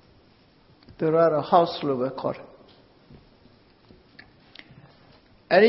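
An elderly man speaks slowly and calmly, close to a microphone.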